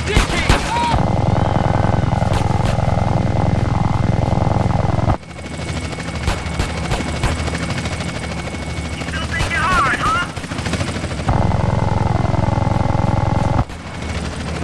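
A minigun fires in long, rapid bursts.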